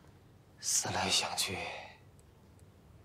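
An elderly man speaks slowly and gravely, close by.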